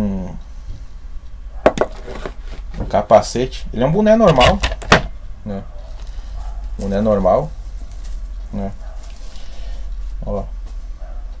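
A plastic cap rustles and knocks as a man handles it.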